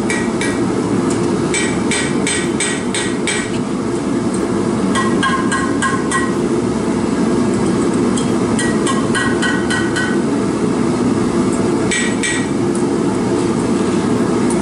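A gas forge roars steadily.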